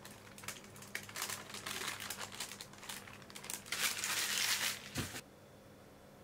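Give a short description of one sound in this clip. Baking paper rustles and crinkles as it is peeled away.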